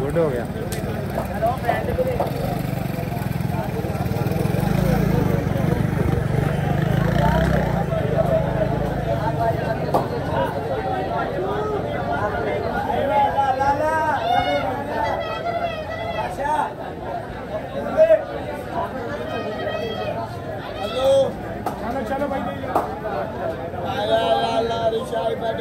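A crowd of people chatters and murmurs all around outdoors.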